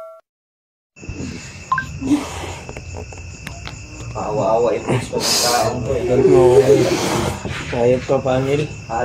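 A young man groans and cries out close by.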